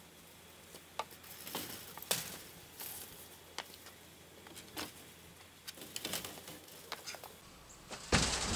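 A light metal panel rattles and knocks.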